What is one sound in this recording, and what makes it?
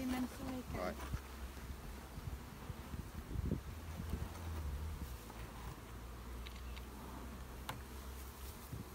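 A metal tool scrapes and knocks against wooden hive frames.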